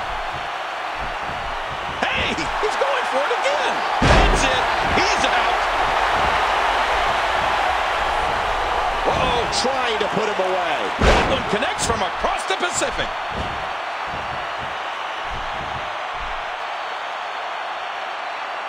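A large crowd cheers steadily in a big arena.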